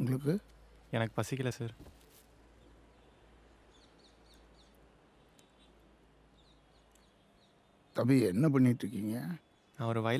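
A young man answers softly nearby.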